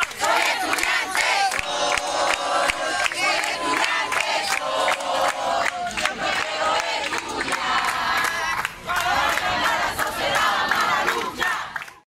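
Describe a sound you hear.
A crowd of young men and women chant loudly together outdoors.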